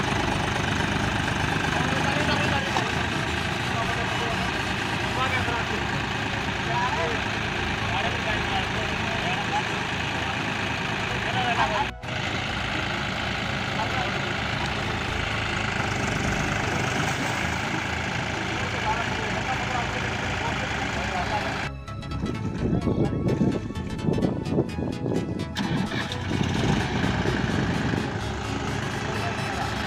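A tractor engine runs loudly and steadily.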